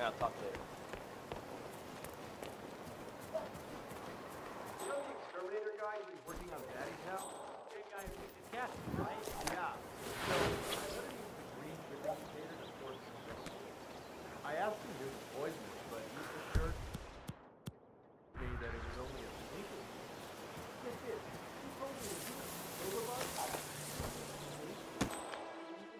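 Footsteps walk over grass and dirt.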